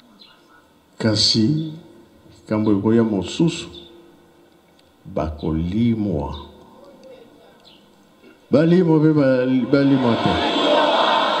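An elderly man speaks loudly into a microphone in short, spaced phrases, heard through a loudspeaker.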